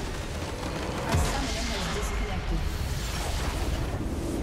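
A large building explodes with a deep rumbling boom.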